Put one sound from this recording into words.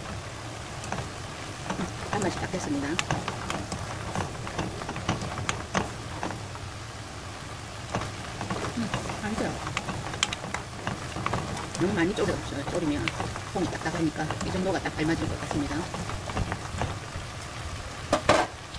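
A wooden spatula scrapes and clatters against a metal pan.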